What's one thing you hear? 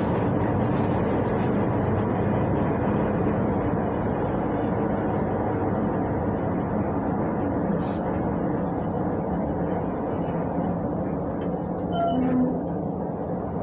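The bus rattles and creaks over the road.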